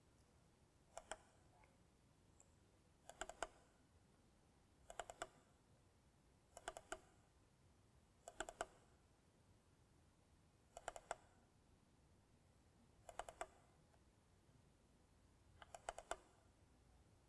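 A computer mouse double-clicks a few times, close by.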